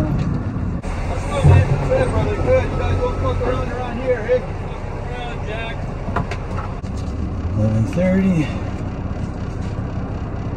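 A truck's diesel engine idles with a low rumble inside the cab.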